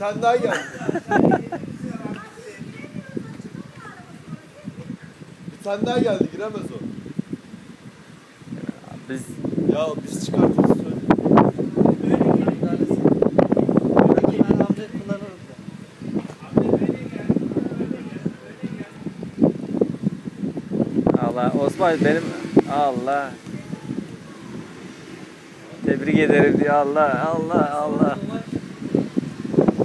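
Young men talk and call out loudly nearby, outdoors.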